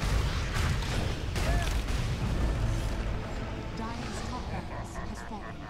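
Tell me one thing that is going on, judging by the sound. Magic blasts and impacts crash loudly during a fight in a game.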